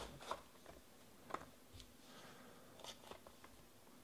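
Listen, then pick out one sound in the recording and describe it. Foil packaging crinkles and tears open.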